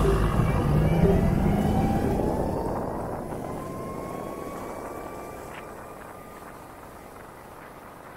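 A motorcycle engine hums as it rides along, its pitch slowly rising as it speeds up.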